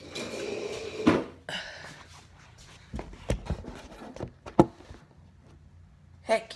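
A phone's microphone rubs and knocks as it is handled.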